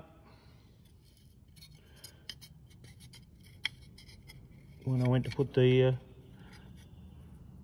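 A thin metal plate taps and clicks softly as it is handled.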